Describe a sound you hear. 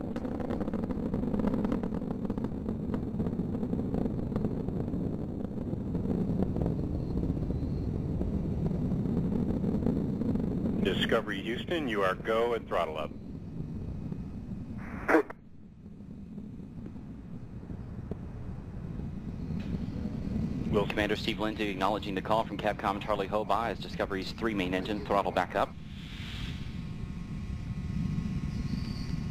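A rocket engine roars with a deep, steady rumble.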